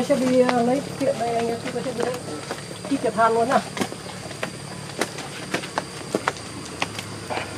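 Rubber boots crunch and scuff on loose dirt and gravel at a steady walking pace.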